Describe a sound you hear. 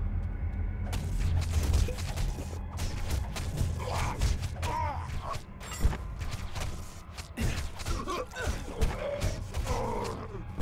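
Magic blasts crackle and burst.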